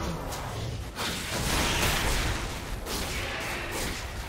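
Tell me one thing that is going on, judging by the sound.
Magic spell effects burst and crackle in a fight.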